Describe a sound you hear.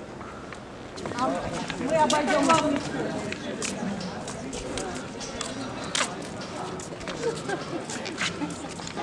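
Footsteps tap on pavement as people walk past.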